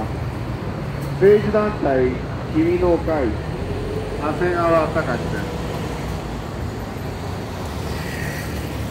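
Traffic rumbles low and steady in the street.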